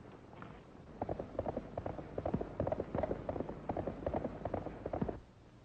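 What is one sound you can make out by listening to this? Horse hooves gallop in a fast rhythm.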